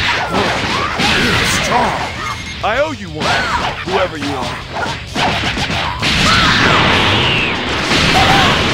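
Punches and energy blasts crack and boom in rapid succession.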